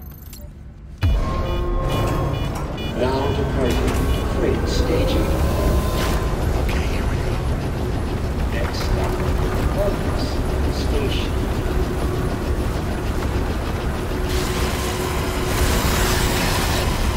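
A large machine rumbles steadily and loudly.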